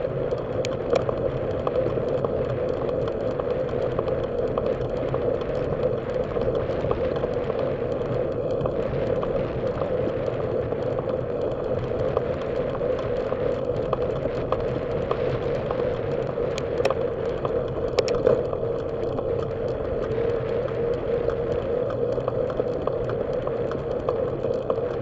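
A bicycle chain and wheel tick and rattle lightly.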